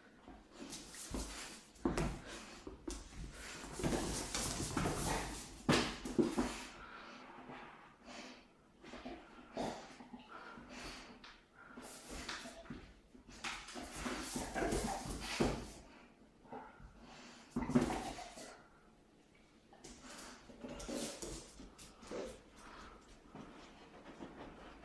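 A dog's claws click and scrabble on a wooden floor.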